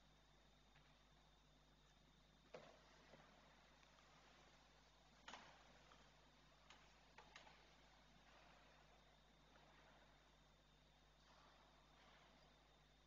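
A man speaks faintly and calmly at a distance in a large echoing hall.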